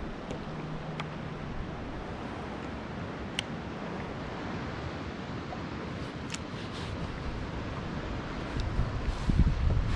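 Wind blows outdoors and gusts against the microphone.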